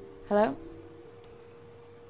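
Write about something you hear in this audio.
A young woman speaks quietly on a phone.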